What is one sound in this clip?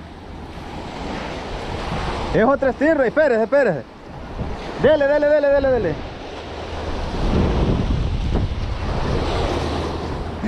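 Waves wash and break over rocks nearby.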